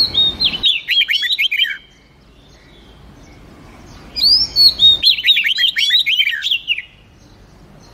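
A songbird sings a quick run of loud, clear whistling notes that swoop downward.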